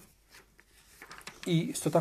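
Paper pages rustle.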